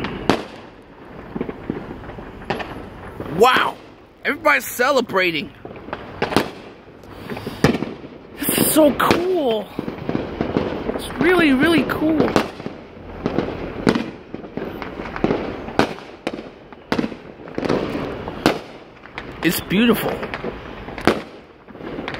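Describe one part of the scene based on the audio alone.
Fireworks bang and pop repeatedly at a distance, outdoors.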